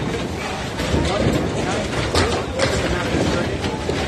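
A bowling ball clunks in a ball return.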